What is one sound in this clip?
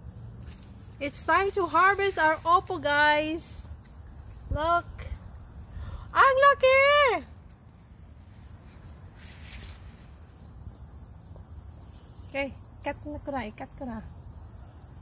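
A woman speaks cheerfully and with animation close by.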